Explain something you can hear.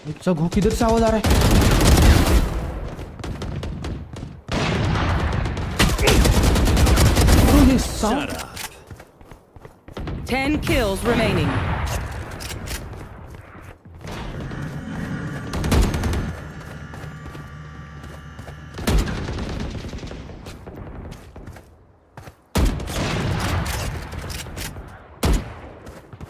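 Rifle gunfire cracks in quick bursts.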